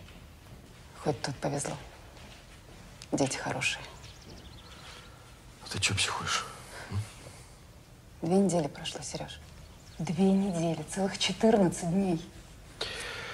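A woman speaks in a calm, serious voice up close.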